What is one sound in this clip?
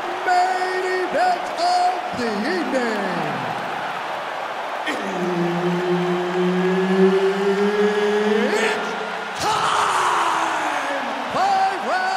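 A man announces loudly through a microphone, drawing out his words dramatically.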